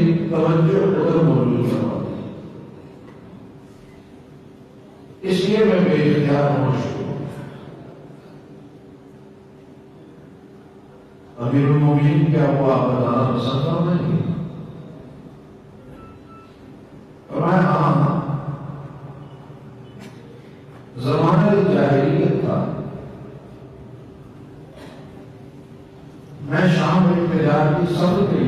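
An elderly man speaks into a microphone in loud bursts with pauses, echoing in a reverberant room.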